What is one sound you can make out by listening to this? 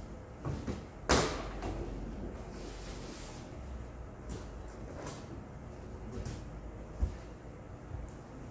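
A large sheet of board rustles and flexes as it is pressed down.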